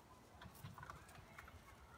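Goats' hooves knock on a wooden platform.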